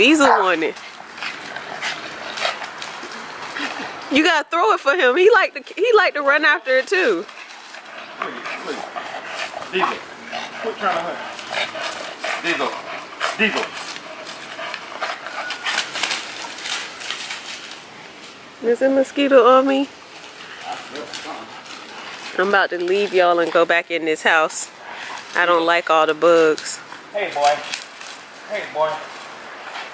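A man talks with animation to dogs nearby, outdoors.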